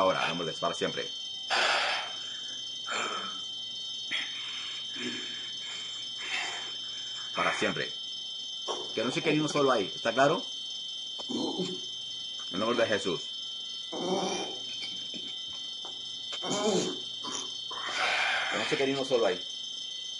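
A young man speaks with emotion in short, strained bursts over an online call.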